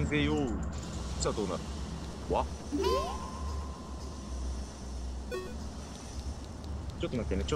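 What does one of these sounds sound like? Short game sound effects chime and swoop in pitch.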